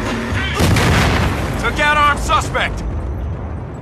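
An explosion booms and rumbles, then fades.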